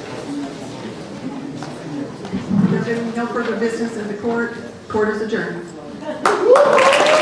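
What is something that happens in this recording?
A middle-aged woman speaks through a microphone in a hall.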